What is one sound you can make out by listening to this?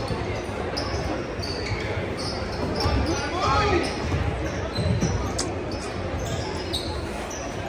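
A crowd of spectators chatters in the background.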